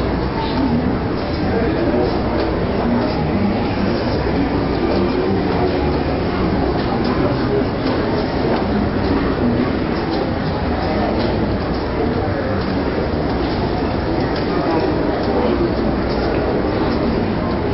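A large crowd murmurs and chatters throughout in a big echoing hall.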